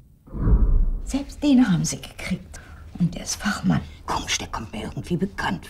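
An elderly woman speaks quietly and close by.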